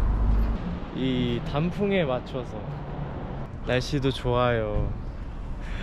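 A young man talks casually close by, muffled through a face mask.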